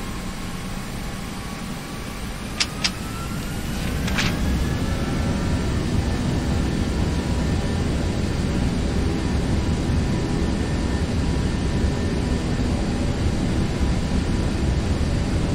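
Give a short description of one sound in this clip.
Jet engines roar and whine, rising in pitch as they spool up.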